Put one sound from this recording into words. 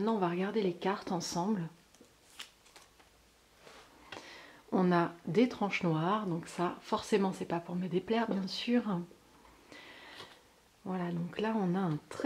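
A deck of cards rustles and taps as it is handled.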